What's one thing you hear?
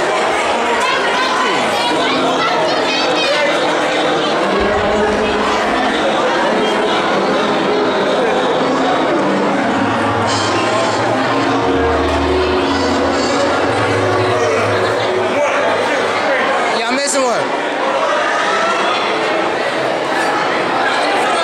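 A crowd of young people chatters and shouts loudly.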